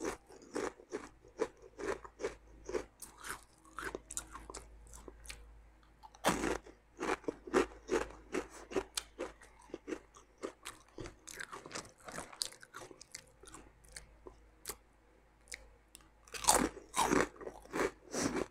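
A young woman crunches crisps loudly, close to a microphone.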